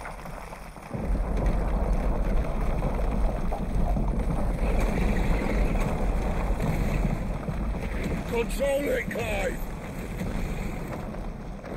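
A deep rumble of fire and falling rock roars loudly.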